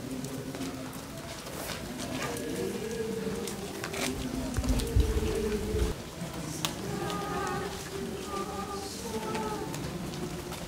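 Many footsteps shuffle on pavement.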